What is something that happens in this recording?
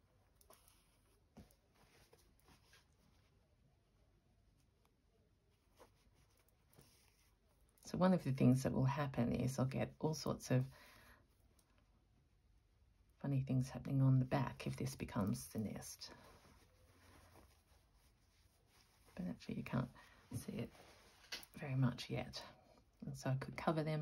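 Fabric rustles softly as hands handle and fold it.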